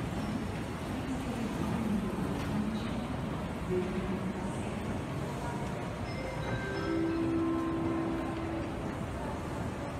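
A crowd murmurs indistinctly in a large echoing hall.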